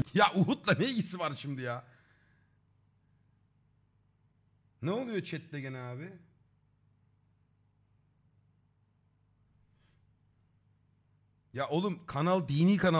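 A man speaks with animation, close to a microphone, in short bursts.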